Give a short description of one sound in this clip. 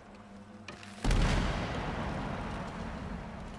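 A heavy thud booms and slowly rumbles away.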